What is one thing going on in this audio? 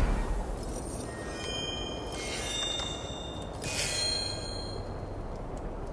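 Bright chimes ring out as a game score counts up.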